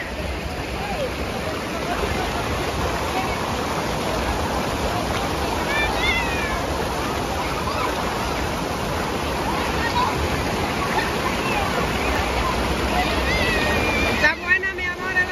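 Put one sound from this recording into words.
Water rushes loudly over a small waterfall.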